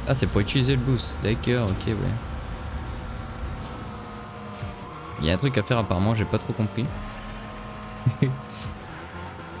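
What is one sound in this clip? A racing car engine hums steadily in a video game.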